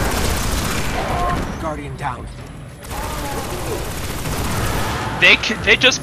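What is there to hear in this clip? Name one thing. Heavy gunfire blasts rapidly.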